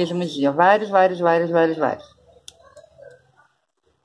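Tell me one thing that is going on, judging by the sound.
Scissors snip a thread.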